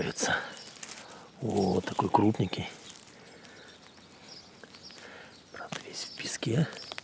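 Dry pine needles rustle and crackle as a hand brushes through them.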